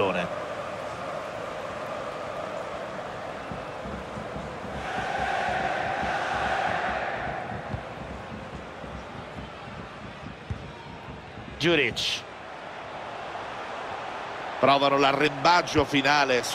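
A stadium crowd roars and chants.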